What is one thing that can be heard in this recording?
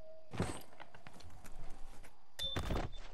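A character's footsteps tap on a metal floor.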